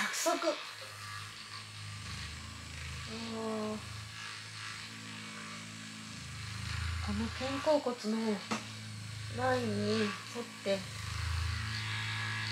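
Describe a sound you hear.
A massage gun buzzes with a low, steady hum.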